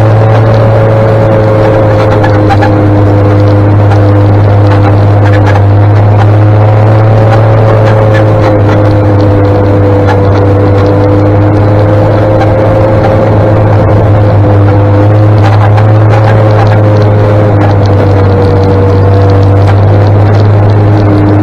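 A tractor engine rumbles ahead.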